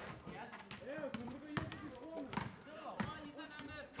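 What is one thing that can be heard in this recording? A basketball bounces on hard pavement.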